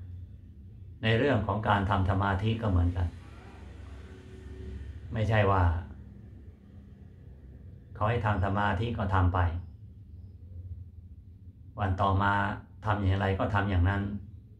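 An elderly man speaks calmly and slowly, close to a microphone, with pauses between phrases.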